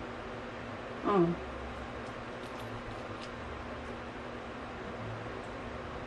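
A young woman chews and eats food close to a microphone.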